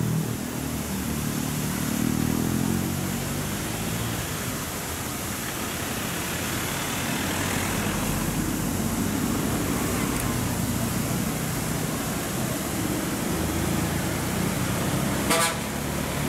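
A bus engine rumbles as it climbs a hill road.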